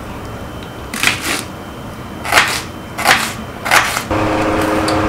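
A knife chops through an onion on a wooden board with sharp knocks.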